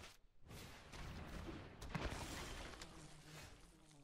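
A soft game chime sounds as a new turn begins.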